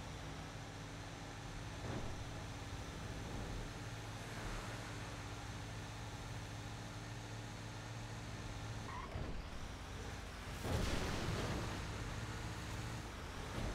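A heavy truck engine drones steadily.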